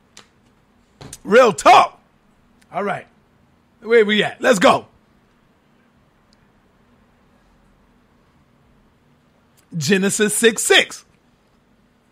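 A man speaks in short bursts, close to a microphone.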